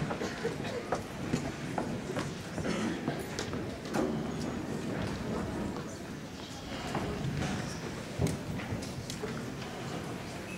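Saxophones and trumpets play in a large echoing hall.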